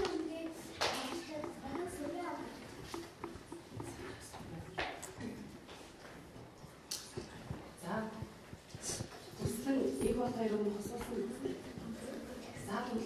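A woman speaks calmly to children nearby.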